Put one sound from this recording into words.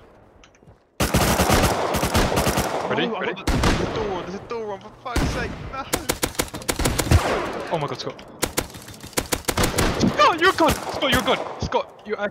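A rifle fires in rapid bursts of loud gunshots.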